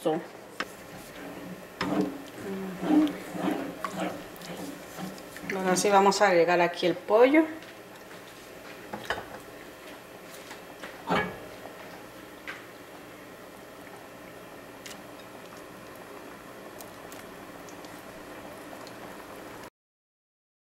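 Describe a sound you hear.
Sauce bubbles gently as it simmers.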